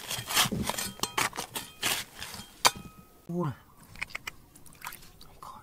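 A metal pick strikes and scrapes into rocky soil.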